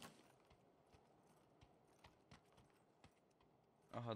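Footsteps thud softly on a floor.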